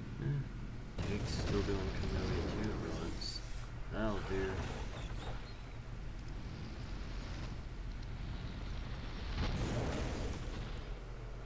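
A monster growls and shrieks loudly.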